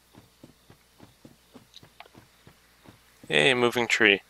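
Quick footsteps tap on soft ground.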